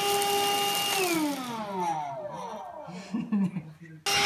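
A handheld vacuum cleaner winds down.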